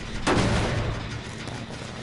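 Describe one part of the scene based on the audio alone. A generator bangs and sputters.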